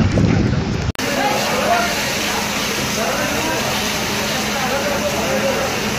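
Water sprays hard from hoses.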